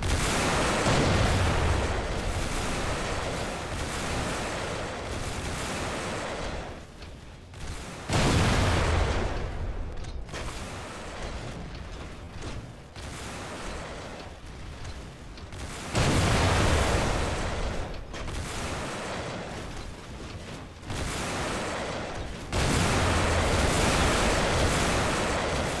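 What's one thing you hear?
Heavy mechanical footsteps thud steadily from a walking robot.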